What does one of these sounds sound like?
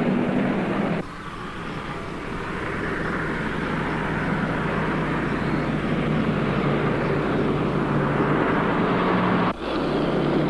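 A car approaches along a road.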